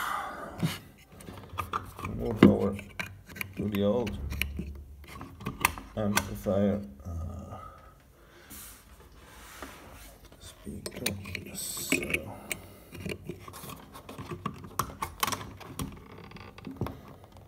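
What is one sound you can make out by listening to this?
A hand plugs cables into sockets with clicks and scrapes.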